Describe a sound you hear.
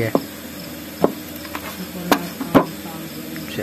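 A metal spatula knocks against an iron griddle.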